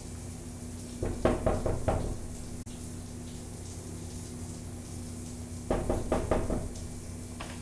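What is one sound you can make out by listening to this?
A hand knocks on a wooden door in quick bursts.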